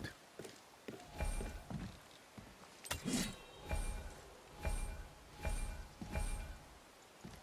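Heavy footsteps thud on wooden planks.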